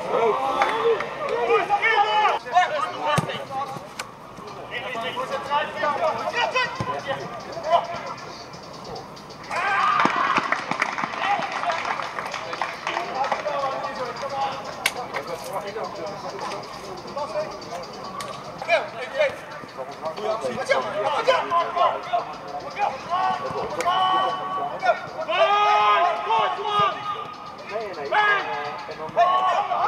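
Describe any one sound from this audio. Young men shout and call to each other across an open pitch outdoors.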